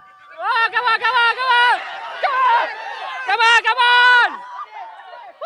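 A young woman shouts excitedly nearby.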